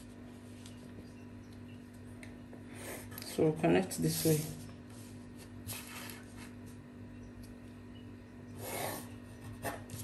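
A pencil scratches lines on paper.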